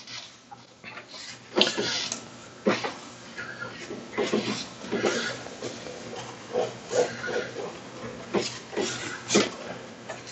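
A paper towel rubs and squeaks across a smooth surface.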